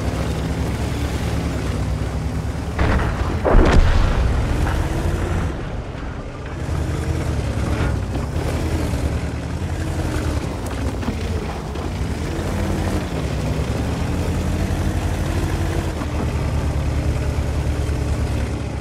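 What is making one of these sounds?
A heavy tank engine rumbles and roars steadily.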